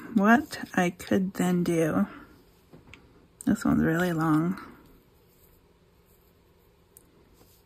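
Paper tags and lace rustle softly as they are handled.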